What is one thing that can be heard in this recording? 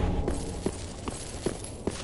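Metal blades clash in a sword fight.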